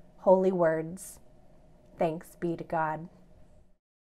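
A woman speaks calmly and warmly into a nearby microphone.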